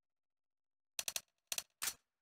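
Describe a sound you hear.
Game menu clicks tick several times in quick succession.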